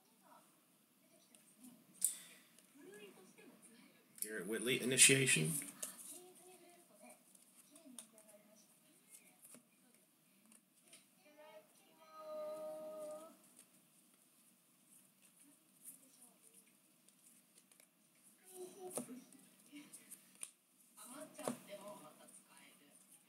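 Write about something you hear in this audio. Trading cards slide and flick against one another in a hand.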